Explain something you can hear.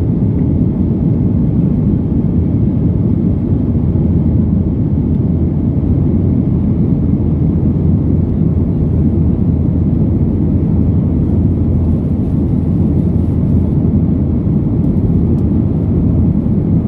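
A jet airliner's engines drone steadily and deeply from inside the cabin.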